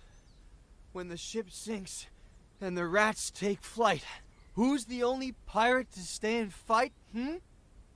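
A woman speaks with dramatic emphasis.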